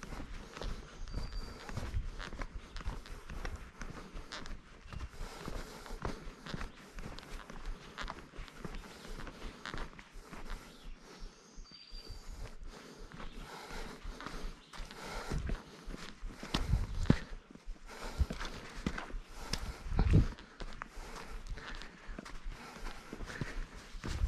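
Footsteps crunch on a dirt trail outdoors.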